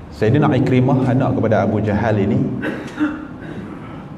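A young man speaks calmly into a microphone, his voice carried through a loudspeaker in an echoing room.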